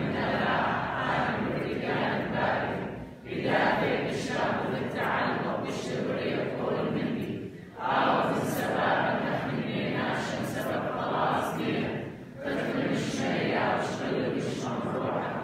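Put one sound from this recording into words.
A woman sings through a microphone, heard over loudspeakers in a large room.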